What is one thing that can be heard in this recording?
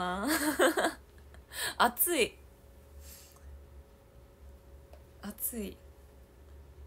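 A young woman speaks cheerfully close to a microphone.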